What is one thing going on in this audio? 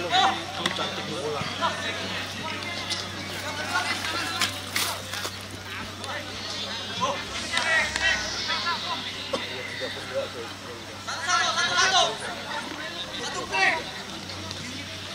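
A crowd of young men shouts and cheers outdoors.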